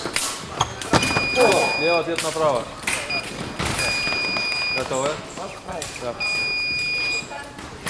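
A scoring machine beeps with a steady electronic tone.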